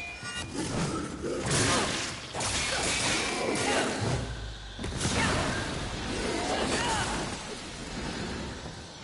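Weapons clash and strike enemies in a game fight.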